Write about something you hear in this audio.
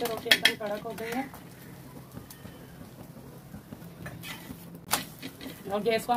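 A metal spatula scrapes and taps against a hot griddle.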